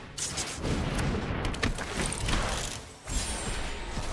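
A magical whoosh sounds as a card is played.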